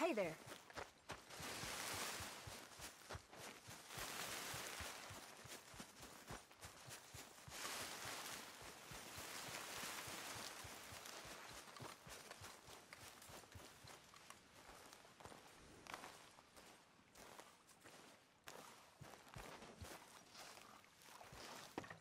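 Footsteps crunch quickly through grass and brush.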